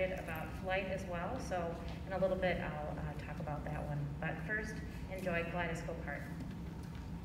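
A woman speaks calmly into a microphone, announcing through loudspeakers in a large echoing hall.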